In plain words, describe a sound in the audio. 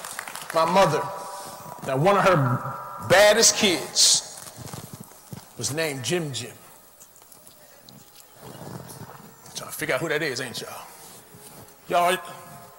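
A man speaks with animation through a microphone in a large echoing room.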